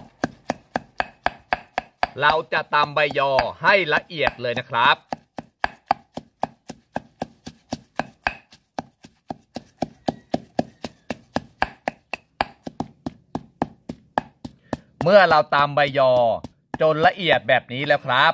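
A stone pestle pounds leaves in a stone mortar with steady, rapid thuds.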